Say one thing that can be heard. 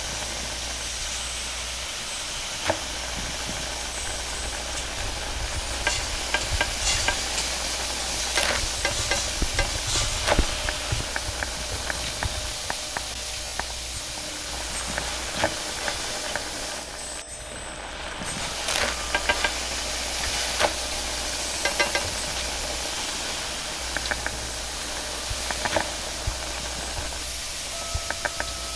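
A gas burner roars.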